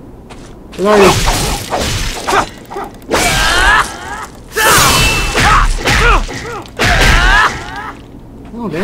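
Swords strike and clang against a wooden target.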